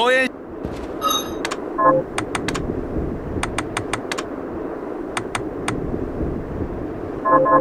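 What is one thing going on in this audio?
Short electronic menu clicks tick quickly, one after another.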